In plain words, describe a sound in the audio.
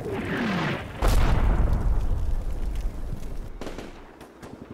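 A shell explodes with a loud boom that rumbles away.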